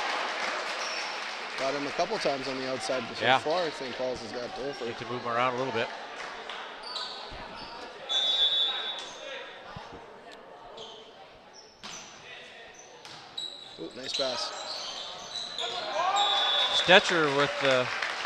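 Sneakers squeak sharply on a hard gym floor in a large echoing hall.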